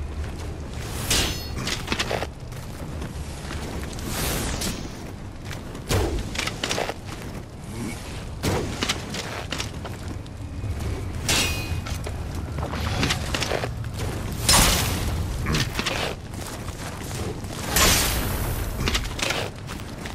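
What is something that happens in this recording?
Sword blades slash and strike in sharp bursts.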